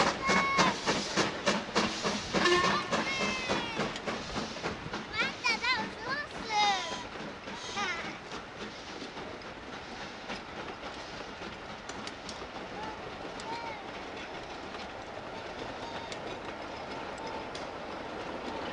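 Railway carriages rumble and clatter steadily along the track.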